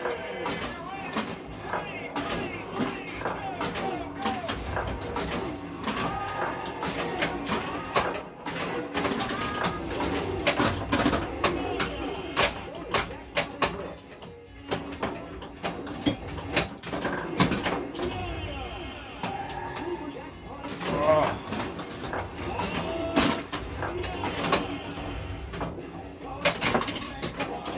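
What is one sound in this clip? A pinball machine plays music and sound effects from its speakers.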